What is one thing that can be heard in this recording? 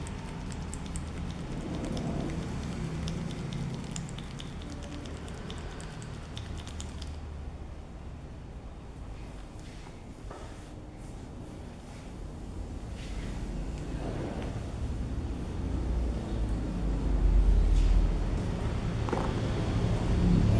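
Hands rub and massage a man's head, rustling through his hair.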